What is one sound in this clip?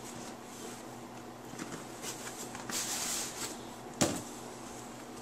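A cardboard box slides and scrapes as it is opened by hand.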